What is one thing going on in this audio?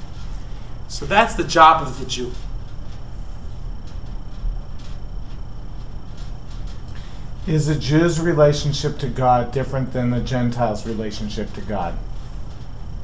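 A middle-aged man speaks calmly close by, with pauses.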